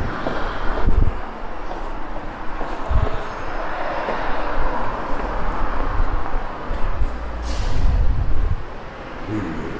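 Footsteps echo through an underground passage.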